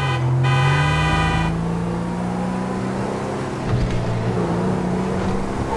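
A car engine hums steadily as the car drives along.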